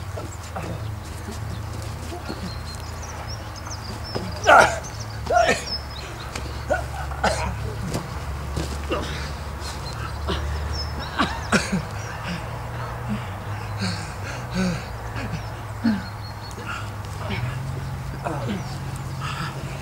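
Two men grunt and strain as they wrestle.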